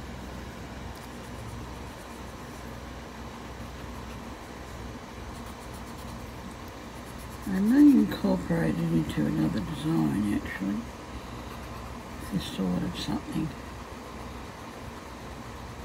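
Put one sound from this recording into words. A paper blending stump rubs softly on paper.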